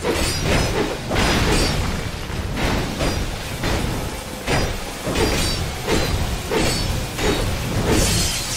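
Metal weapons clang against a shield in quick blows.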